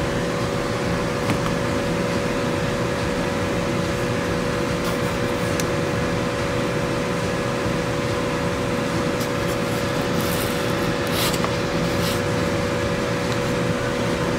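A power drill motor hums steadily close by.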